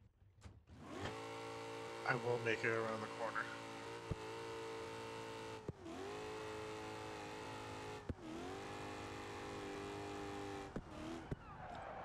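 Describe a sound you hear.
A car engine roars and revs as the car speeds along.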